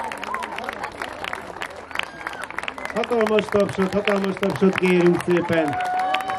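An outdoor audience claps and applauds.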